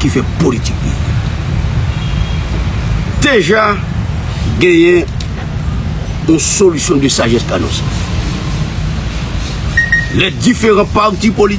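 An elderly man speaks into a microphone in short, emphatic bursts.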